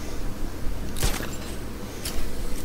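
A grappling hook fires with a sharp whoosh.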